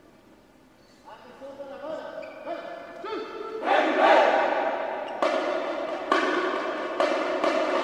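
A marching band plays brass instruments loudly in a large echoing hall.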